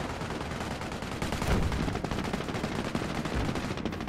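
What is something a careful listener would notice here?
A shell explodes with a dull boom.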